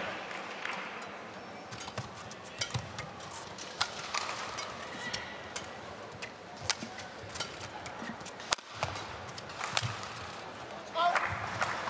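Badminton rackets smack a shuttlecock in a quick rally.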